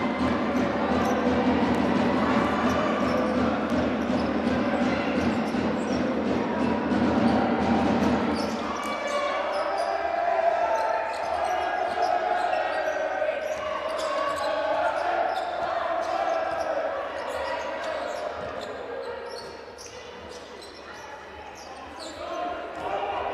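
A crowd cheers and chants in a large echoing hall.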